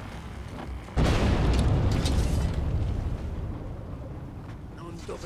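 A fiery blast roars and rumbles.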